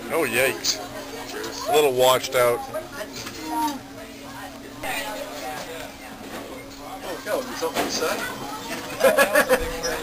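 A teenage boy talks casually close by.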